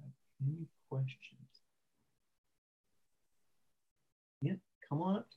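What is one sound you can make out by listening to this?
A young man speaks calmly over an online call, pausing between phrases.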